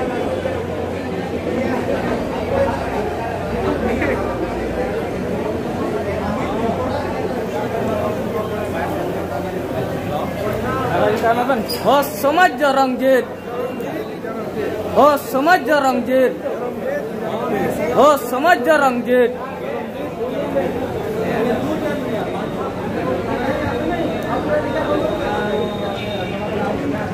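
A crowd of people chatters indoors.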